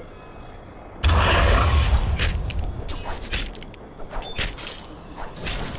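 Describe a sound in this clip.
Magic spells burst with a loud whooshing blast.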